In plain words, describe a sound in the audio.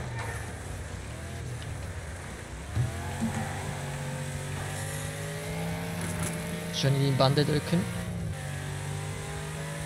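A car engine roars steadily at high revs.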